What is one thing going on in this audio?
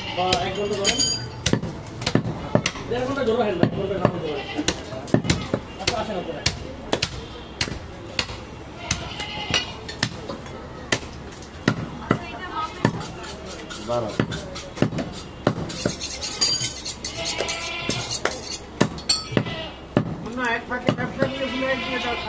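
A cleaver chops meat on a wooden block with sharp, repeated knocks.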